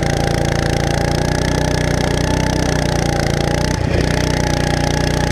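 A small kart engine buzzes loudly and steadily up close.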